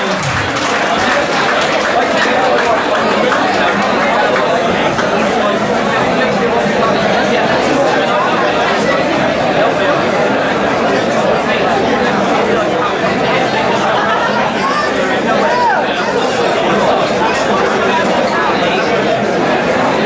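A crowd of people talks and cheers loudly in a large echoing hall.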